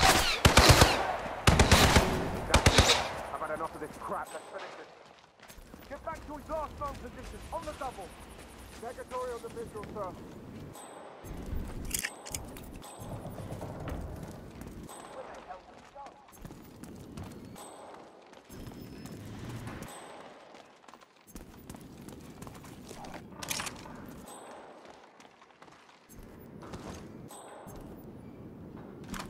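Footsteps tread steadily on gravel and wooden boards.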